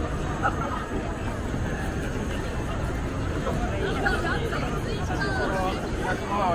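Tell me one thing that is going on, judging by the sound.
A busy crowd murmurs and chatters outdoors on a city street.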